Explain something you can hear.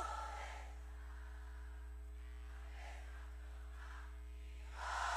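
A woman sings into a microphone through loudspeakers.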